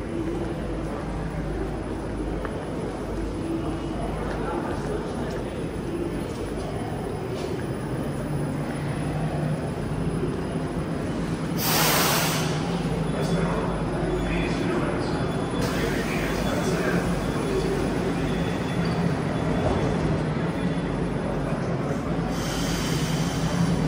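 A subway train hums steadily at a platform.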